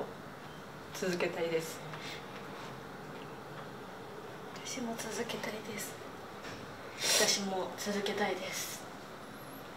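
A young woman speaks quietly and tearfully, close by.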